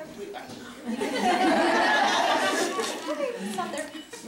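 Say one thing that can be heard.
A small boy laughs close by.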